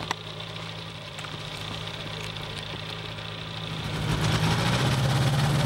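A small aircraft engine idles nearby with a steady buzzing drone that grows louder.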